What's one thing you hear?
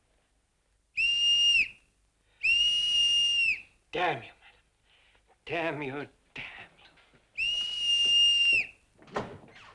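A whistle blows shrilly in short blasts.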